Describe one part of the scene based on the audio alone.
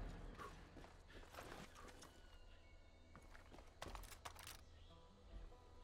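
Footsteps swish through wet grass at a walking pace.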